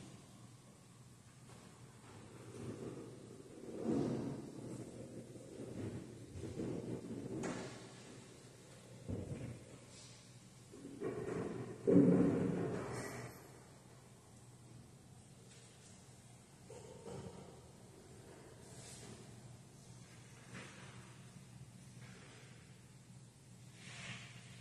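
Objects knock softly as a man sets them down.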